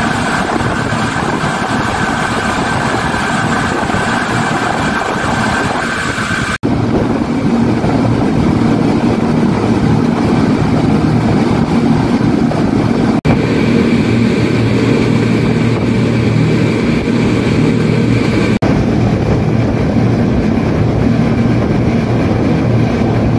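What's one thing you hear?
Water rushes and churns loudly behind a speeding boat.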